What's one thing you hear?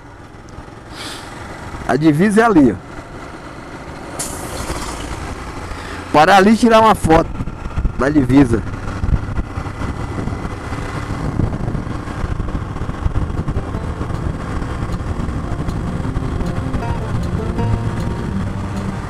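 Wind rushes and rumbles loudly, growing stronger as the ride speeds up.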